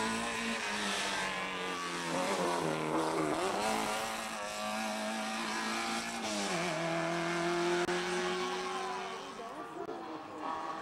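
A rally car engine roars and revs hard, shifting gears as it races past.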